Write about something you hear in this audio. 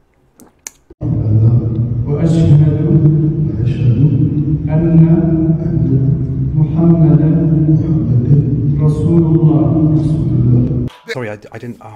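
A young man speaks loudly into a microphone in an echoing hall.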